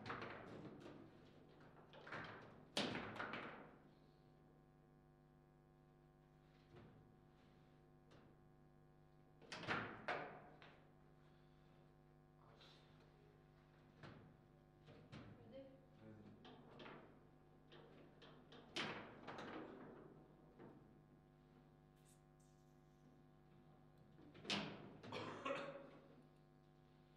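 Table football rods clatter as they are spun and slid.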